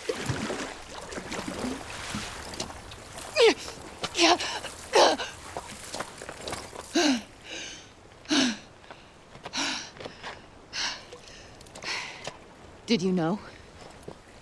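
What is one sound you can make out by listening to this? Someone crawls slowly over loose gravel.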